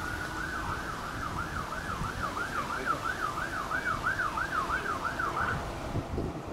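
A siren wails rapidly up and down, then stops.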